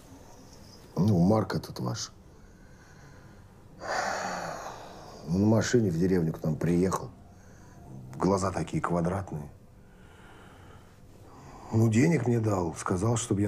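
A man speaks in a low, serious voice close by.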